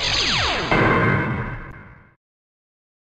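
A bright electronic game jingle sounds and fades.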